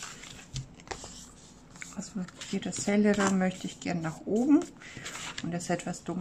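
Paper rustles and slides on a table.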